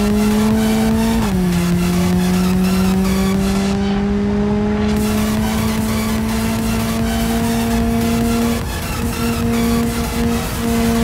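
A car engine hums steadily, dropping in pitch after a gear change and then slowly rising.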